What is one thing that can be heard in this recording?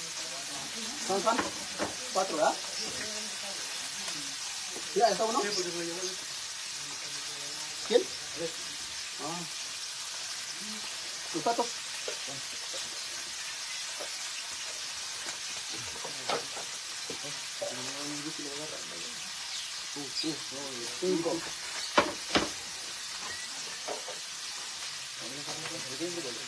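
A middle-aged woman talks casually nearby.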